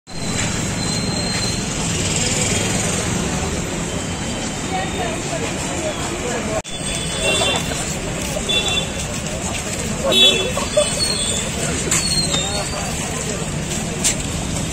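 Many footsteps shuffle along pavement.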